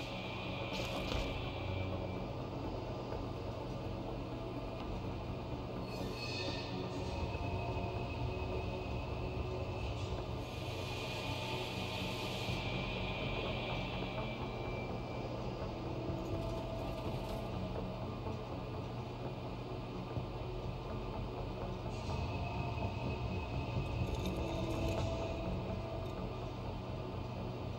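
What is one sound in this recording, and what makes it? Machinery hums steadily in a large hall.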